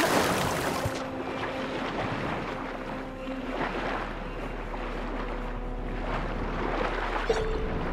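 Muffled underwater rumbling and bubbling.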